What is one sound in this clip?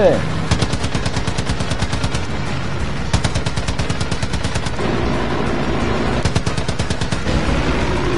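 A plane's machine guns fire in rapid bursts.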